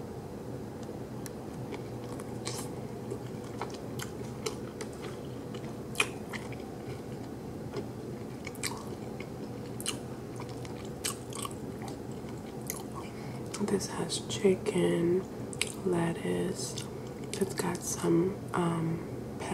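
A woman bites into a crunchy wrap up close.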